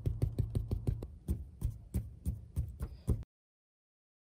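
A brush dabs rhythmically against a canvas.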